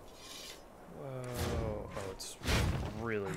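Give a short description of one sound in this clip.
A heavy sword swings through the air with a whoosh.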